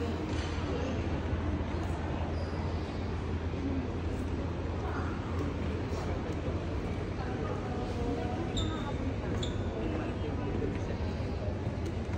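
People chatter faintly in a large, echoing hall.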